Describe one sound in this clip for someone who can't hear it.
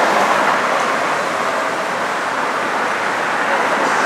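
A car engine idles and pulls away nearby.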